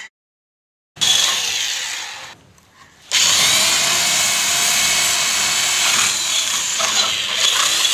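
An electric drill whirs, boring into a wooden door.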